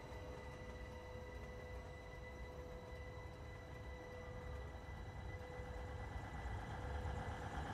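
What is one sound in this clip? A train engine rumbles as a train approaches and grows louder.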